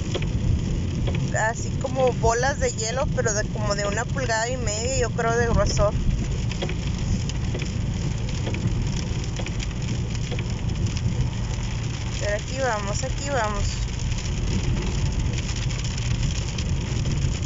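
Rain patters on a windshield.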